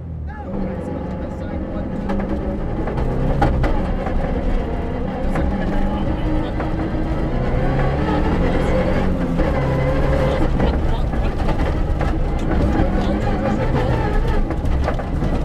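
Gravel and stones rattle against the underside of a car.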